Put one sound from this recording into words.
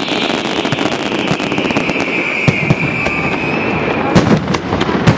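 A firework whistles with a high, slowly falling screech.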